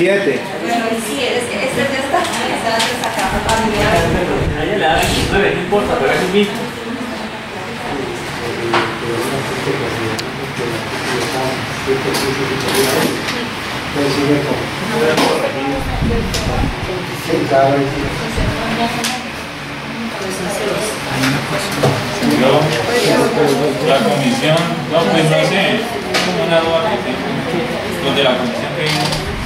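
A woman reads aloud steadily.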